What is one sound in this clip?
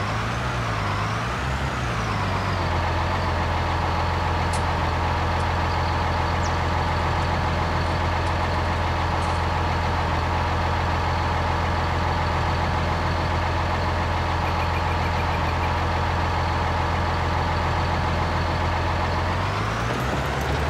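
A tractor engine rumbles steadily at idle.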